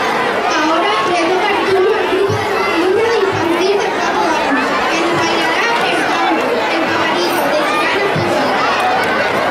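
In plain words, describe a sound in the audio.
A woman sings through a loudspeaker.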